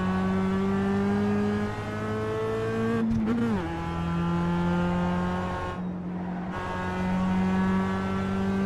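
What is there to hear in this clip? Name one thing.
A racing car engine roars steadily, rising in pitch and dropping sharply as gears change.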